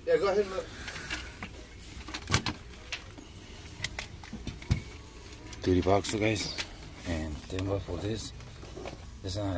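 Plastic gadgets and cables rattle and clack as a hand rummages through them.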